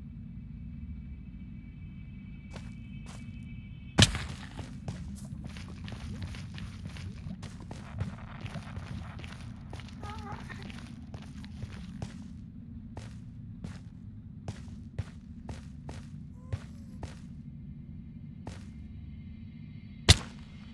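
Footsteps crunch quickly over soft ground.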